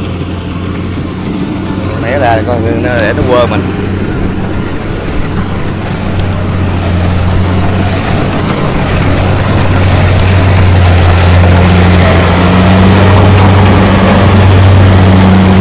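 A combine harvester engine drones steadily, growing louder as it comes closer.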